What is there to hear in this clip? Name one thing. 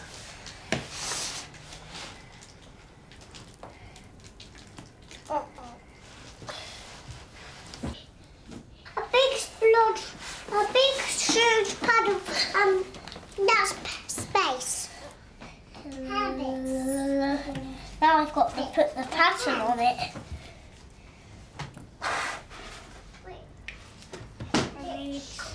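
Wet paint squelches between small hands.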